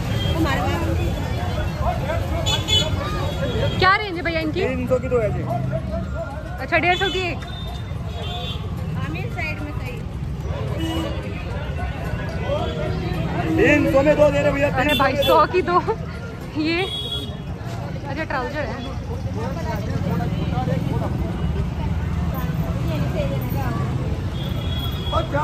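A busy street market hums with many distant voices outdoors.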